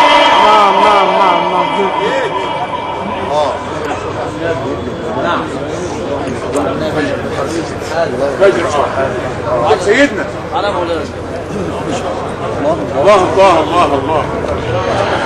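A crowd of men talks and calls out loudly all around.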